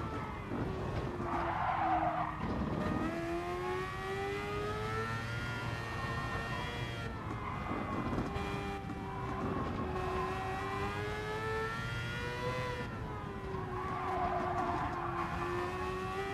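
Tyres squeal through the corners.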